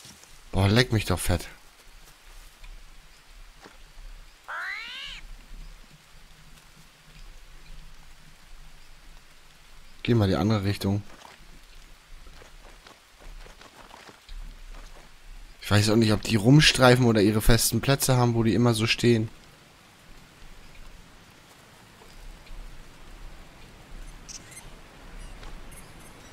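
Rain falls steadily on leaves.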